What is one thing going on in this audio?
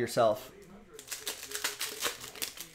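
A foil wrapper crinkles.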